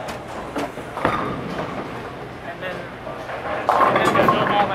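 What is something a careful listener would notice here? A bowling ball thuds onto a lane and rolls away.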